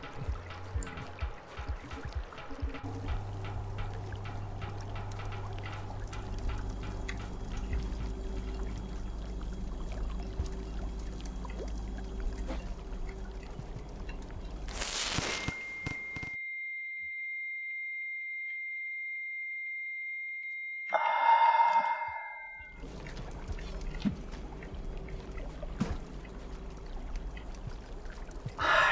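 Low, droning electronic game music plays.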